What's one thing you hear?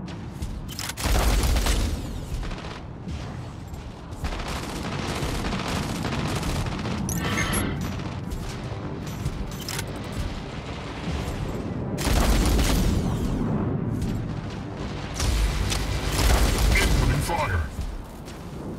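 Game guns fire in loud, rapid bursts.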